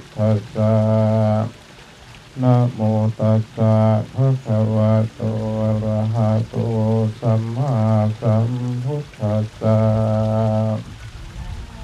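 A man chants in a steady, droning voice, outdoors.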